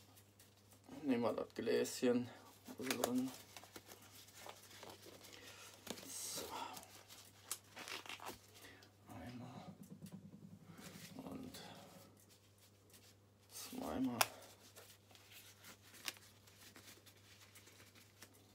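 Rubber gloves rustle and snap as they are pulled on.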